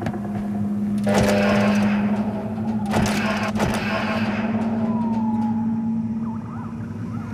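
An electric motor hums loudly and steadily.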